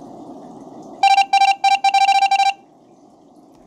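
A game's typing text plays in quick beeps.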